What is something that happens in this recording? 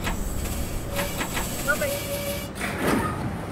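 Train brakes squeal briefly as the train comes to a stop.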